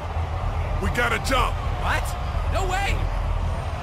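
A second man speaks in disbelief.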